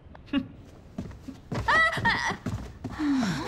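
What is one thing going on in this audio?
A young woman asks a question in surprise, close by.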